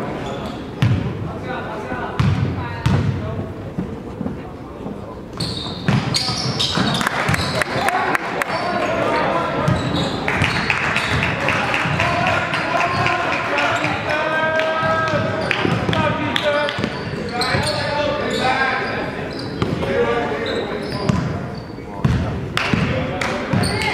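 A basketball bounces on a wooden floor in a large echoing gym.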